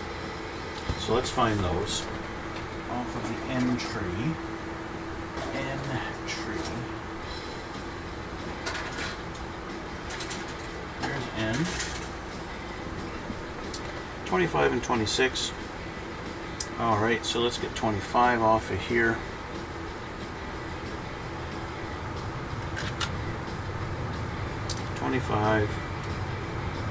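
A man talks calmly and casually into a microphone, close by.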